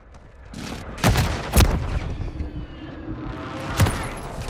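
Loud gunshots and explosions boom close by.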